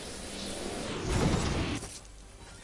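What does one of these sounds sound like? A heavy thump sounds on landing.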